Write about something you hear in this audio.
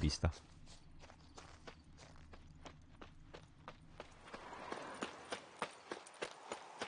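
Footsteps thud steadily on a dirt path at a quick pace.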